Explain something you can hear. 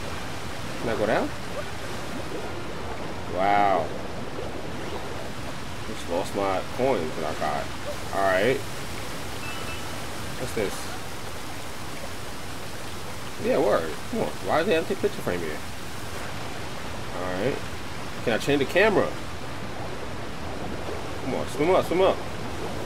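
A man speaks in short bursts close to a headset microphone.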